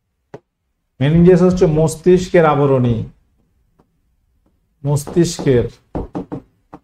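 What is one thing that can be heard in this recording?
A man speaks loudly and with animation into a microphone.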